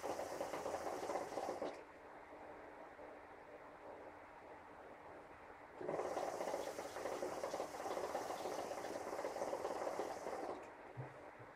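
Water bubbles in a hookah as a young man draws on it.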